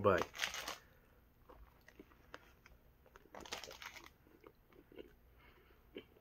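A man chews a sandwich.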